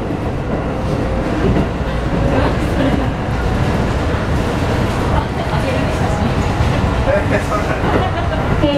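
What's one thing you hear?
A train car rumbles and rattles steadily along the tracks.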